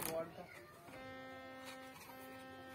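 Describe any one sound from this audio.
A harmonium sounds a steady held chord.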